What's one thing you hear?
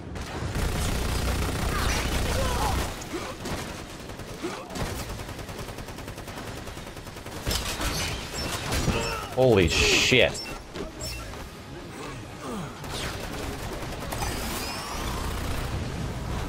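Gunfire rattles from a game.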